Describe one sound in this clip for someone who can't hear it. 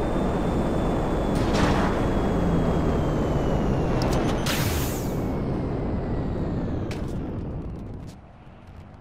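A jet engine roars loudly and fades.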